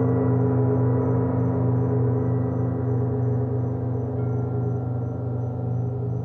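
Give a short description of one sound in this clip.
A singing bowl rings with a steady, humming, shimmering tone.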